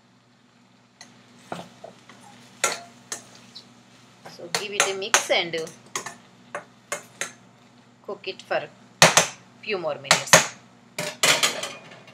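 A metal spoon scrapes and clatters against a pan.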